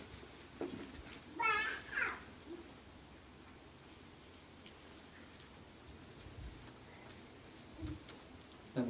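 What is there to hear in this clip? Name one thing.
A young man speaks briefly, pausing for long stretches.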